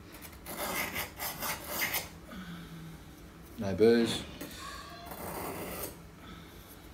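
A metal blade scrapes against a sharpening stone.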